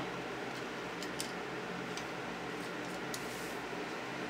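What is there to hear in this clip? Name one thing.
Plastic toy parts click softly as they are handled.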